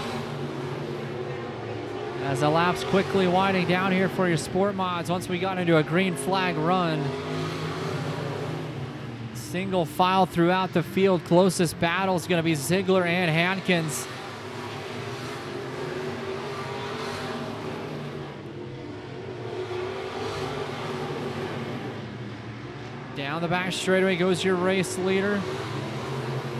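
Race car engines roar and rev loudly, rising and falling in pitch.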